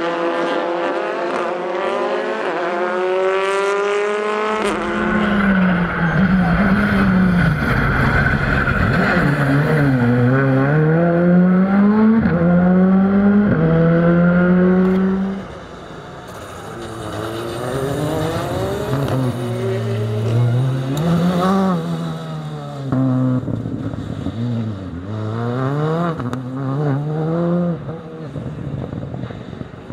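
A rally car engine revs hard through gear changes.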